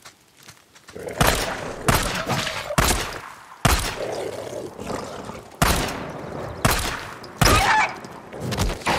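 A wolf snarls and growls aggressively.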